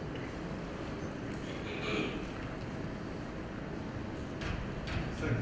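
A man speaks calmly into a microphone, heard over loudspeakers in a large hall.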